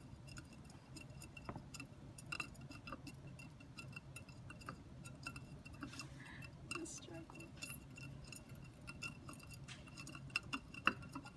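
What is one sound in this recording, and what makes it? A wooden stick stirs water in a plastic cup, clinking lightly against the sides.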